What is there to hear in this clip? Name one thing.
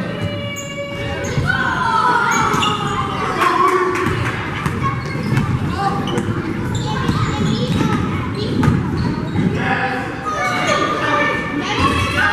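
Spectators shout and call out in a large echoing gym.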